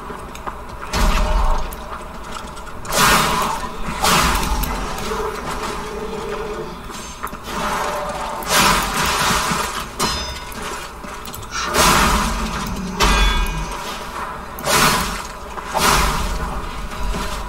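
Blades slash and strike with heavy impacts.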